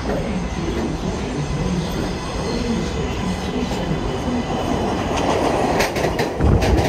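Brakes squeal as a subway train slows.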